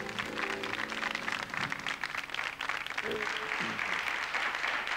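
A band plays music with electric guitars and keyboard.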